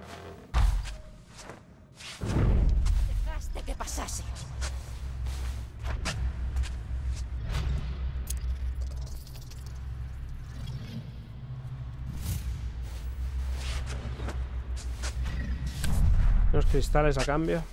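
Footsteps rustle and crunch through dry straw and leaves.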